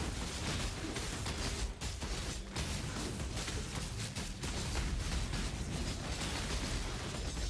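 Blows strike creatures with heavy thuds.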